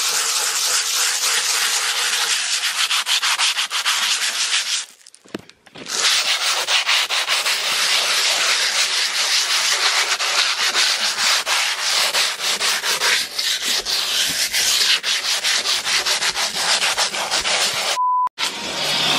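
Sandpaper scrapes rapidly back and forth over a hard surface.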